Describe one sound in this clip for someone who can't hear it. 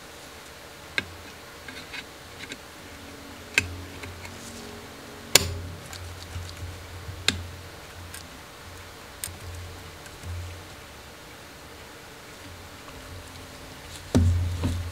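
Small metal parts click and tap.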